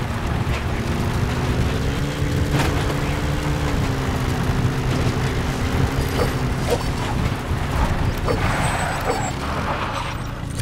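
Tyres crunch over sand and gravel.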